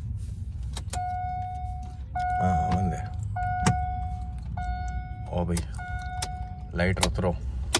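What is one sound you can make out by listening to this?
An electronic chime beeps repeatedly in short even tones.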